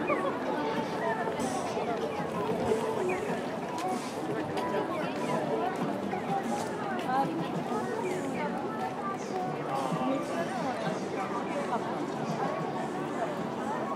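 A busy crowd chatters all around outdoors.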